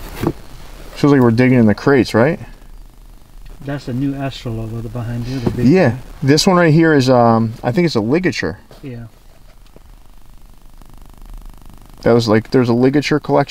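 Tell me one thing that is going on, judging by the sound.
A man talks calmly, close by.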